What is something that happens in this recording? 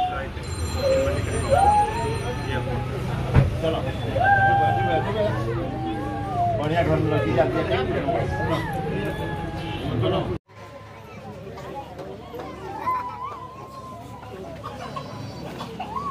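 A crowd of women and men chatter loudly close by.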